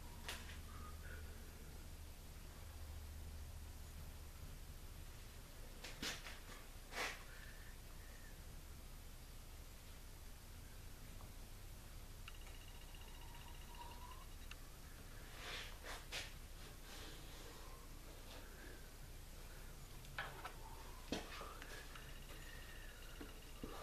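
Leather rustles and creases as it is folded and pressed flat by hand.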